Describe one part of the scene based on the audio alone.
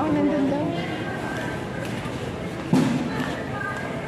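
A shopping cart rattles as it rolls along a hard floor.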